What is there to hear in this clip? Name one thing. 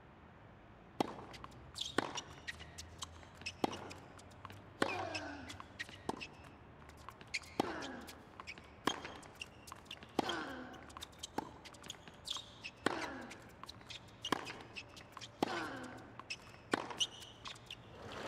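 A tennis ball is struck back and forth with sharp pops of the racket.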